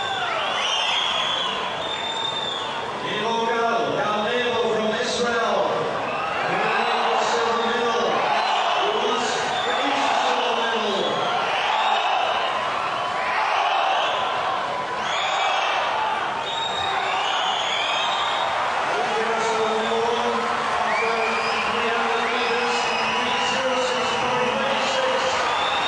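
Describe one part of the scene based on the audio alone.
A large crowd cheers and roars in an echoing hall.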